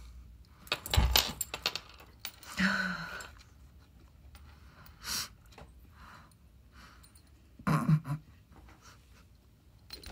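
A metal tag jingles softly on a cat's collar.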